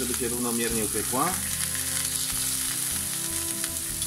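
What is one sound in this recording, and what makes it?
Tongs clink against a frying pan.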